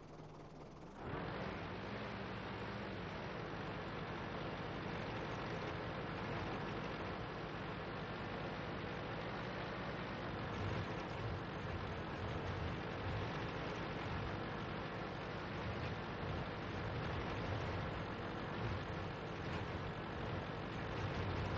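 A tank engine rumbles as a tank drives.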